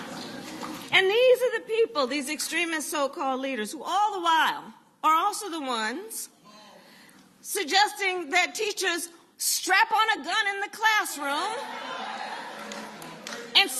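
A woman speaks with animation through a microphone in a large room.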